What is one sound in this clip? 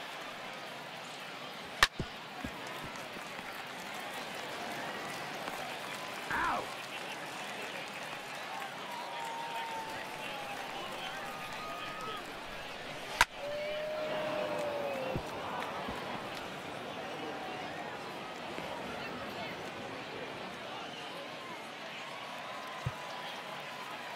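A stadium crowd murmurs and cheers.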